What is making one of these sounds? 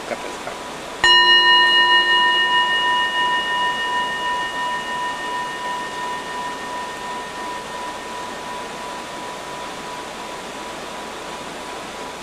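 A bowl bell is struck once and rings on, slowly fading.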